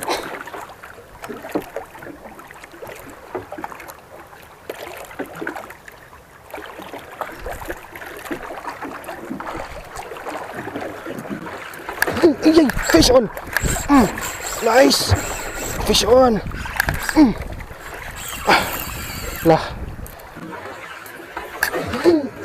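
Waves slap against the side of a small boat.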